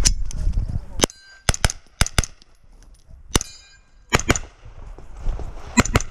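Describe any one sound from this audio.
A handgun fires sharp, loud shots in quick bursts outdoors.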